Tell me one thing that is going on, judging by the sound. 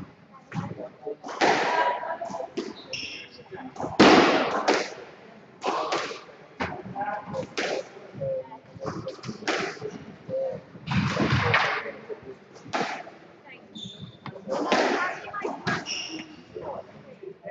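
A squash ball smacks sharply against the walls, echoing around the court.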